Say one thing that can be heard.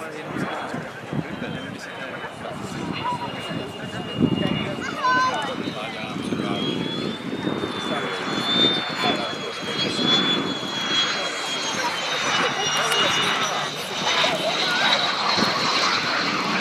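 A jet engine whines and roars as a jet flies past low, growing louder.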